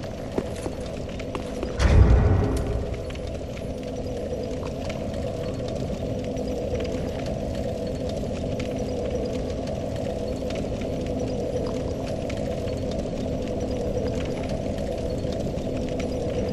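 A fire crackles steadily.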